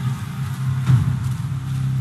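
Footsteps tread on a stone floor in a large echoing hall.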